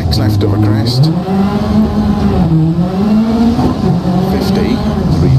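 A car engine roars loudly, its pitch rising and falling as it revs.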